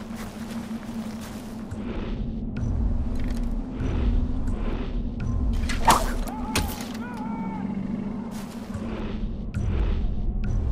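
Footsteps swish and thud through dry grass.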